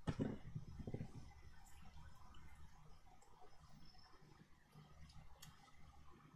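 Paper rustles softly as it is pressed down by hand.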